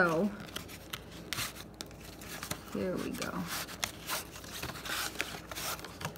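A cardboard box taps and scrapes as fingers handle it.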